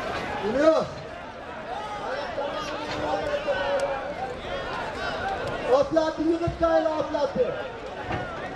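Men shout loudly nearby.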